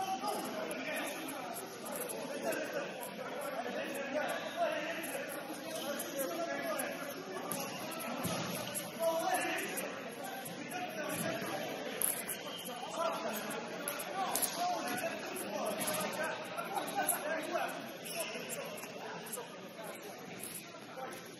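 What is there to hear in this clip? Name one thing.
Young players talk and call out in a large echoing gym.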